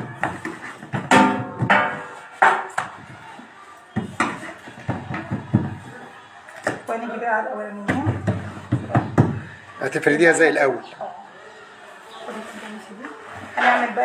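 Hands pat and slap soft dough on a metal tray.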